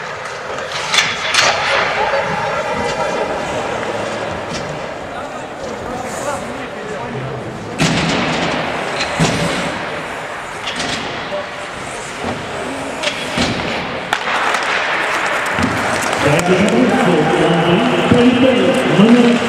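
Hockey sticks clack sharply against the ice and puck.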